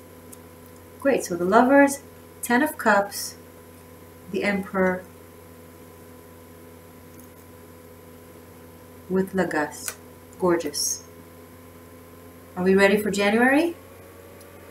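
A woman speaks calmly and close by, in short phrases with pauses.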